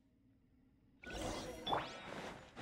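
A magical blast bursts with bright, shimmering crackles.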